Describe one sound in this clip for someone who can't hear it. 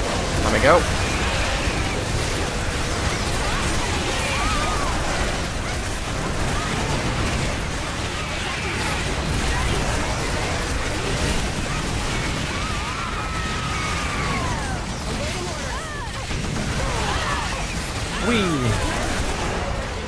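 Giant creatures shriek and screech.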